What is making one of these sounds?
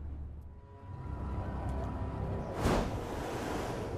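A heavy whoosh and thud sound as a figure leaps from a rooftop.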